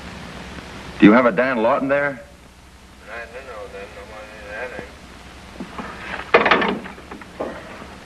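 A man speaks tensely into a telephone.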